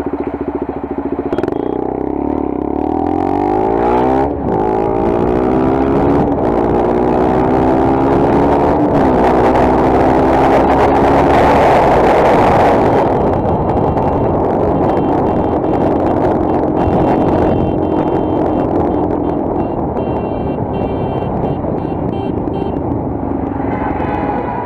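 A motorcycle engine hums and revs up and down as it rides.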